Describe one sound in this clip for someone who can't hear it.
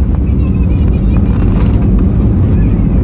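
Wheels thump onto the runway.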